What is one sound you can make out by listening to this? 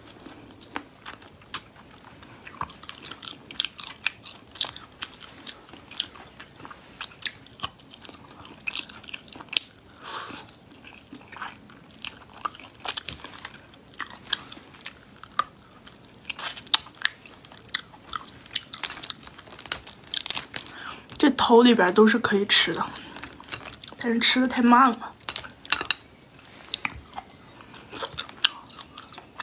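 A young woman chews and smacks on saucy food close to a microphone.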